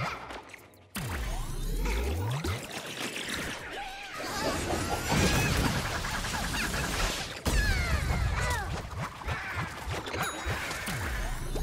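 Video game blasts and magic effects whoosh and boom.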